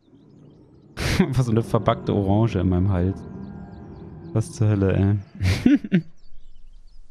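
A dinosaur bellows and grunts loudly.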